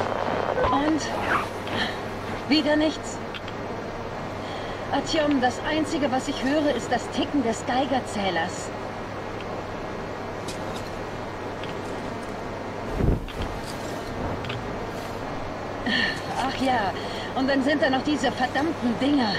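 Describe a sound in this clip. A young woman talks calmly through a gas mask, close by.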